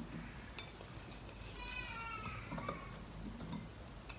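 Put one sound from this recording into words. Chopped cucumber pieces drop softly into a glass bowl.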